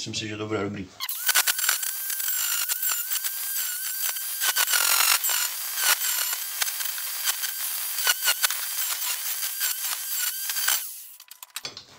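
An angle grinder whines loudly as it cuts metal.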